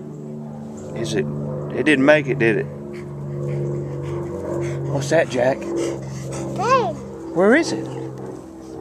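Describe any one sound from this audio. A toddler babbles and squeals.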